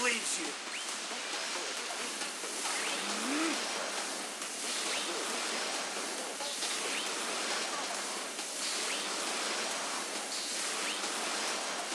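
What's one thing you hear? Magic blasts roar and crackle in rapid, repeated bursts.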